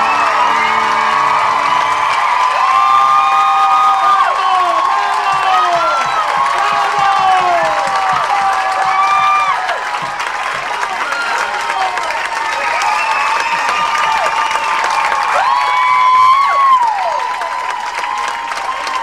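An audience cheers and whoops loudly in a hall.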